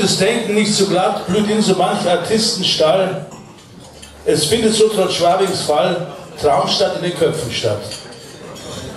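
A man reads aloud into a microphone, heard through loudspeakers.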